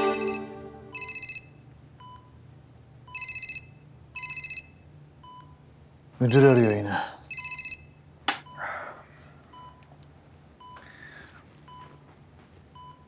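A patient monitor beeps steadily at an even pace.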